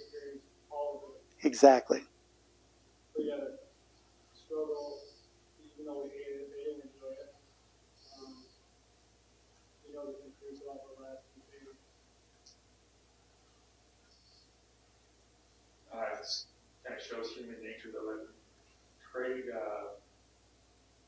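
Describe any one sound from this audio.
An elderly man speaks calmly and slowly, as if reading aloud.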